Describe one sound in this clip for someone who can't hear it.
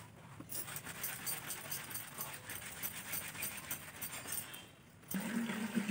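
A cloth is scrubbed against a wet stone.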